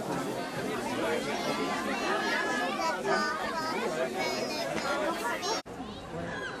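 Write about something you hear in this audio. A crowd of children and adults chatter excitedly close by.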